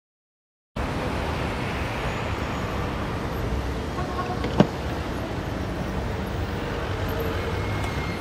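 A car engine idles on a wet street.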